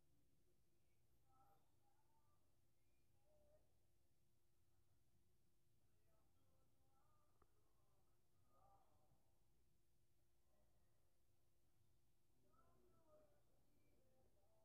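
Soft, gentle electronic chimes sound now and then.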